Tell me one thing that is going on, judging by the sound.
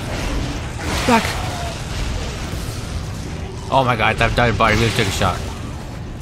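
A futuristic gun fires sharp electric bursts.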